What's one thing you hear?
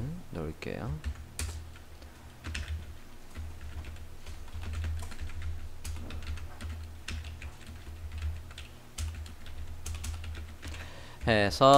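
Keys click on a computer keyboard as someone types.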